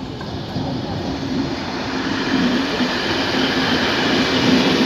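A second train's engine hums steadily as it pulls in.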